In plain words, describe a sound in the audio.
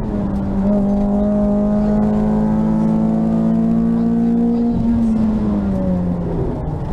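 A rally car engine roars loudly at high revs from inside the cabin.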